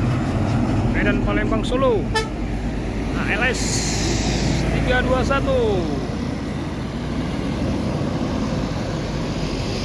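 A bus engine rumbles as it drives past and pulls away.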